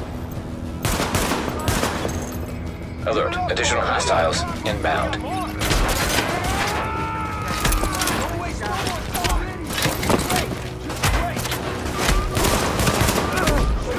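Gunshots fire in sharp bursts at close range.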